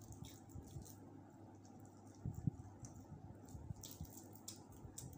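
A woman chews food noisily close to a microphone.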